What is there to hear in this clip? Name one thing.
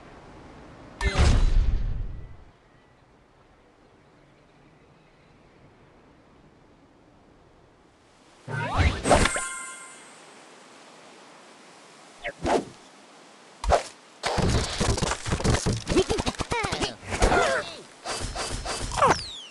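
Short, playful electronic sound effects chime and whoosh.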